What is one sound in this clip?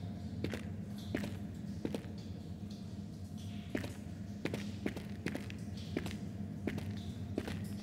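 Footsteps crunch steadily on rocky ground.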